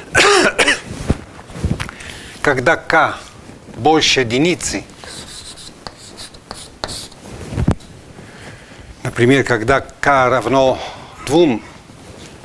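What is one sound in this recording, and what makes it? An elderly man lectures calmly in a room with a slight echo.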